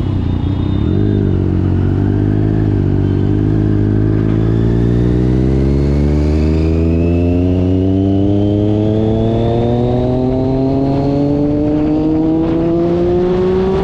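A motorcycle engine revs up steadily as it speeds away.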